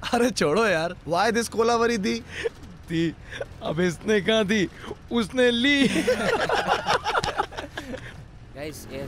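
A young man talks playfully, close by.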